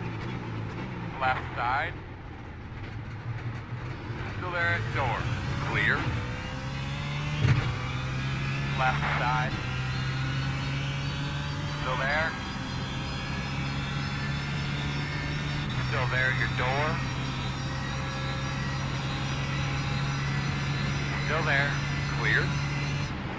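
A race car engine drones steadily and revs up through the gears.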